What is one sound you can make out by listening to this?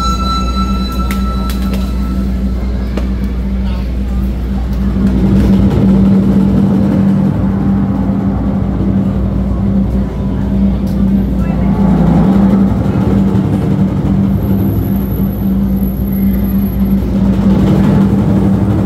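Drum kit cymbals clash.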